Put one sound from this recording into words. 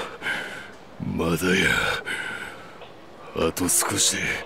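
An older man answers in a gruff, strained voice.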